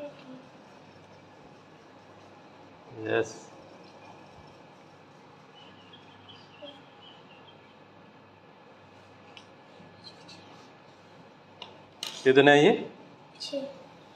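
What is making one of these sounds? Plastic dominoes clack softly as a hand places them on a hard floor.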